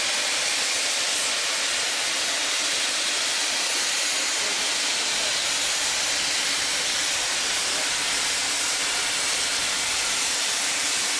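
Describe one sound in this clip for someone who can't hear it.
A steam locomotive vents steam with a loud, steady roaring hiss.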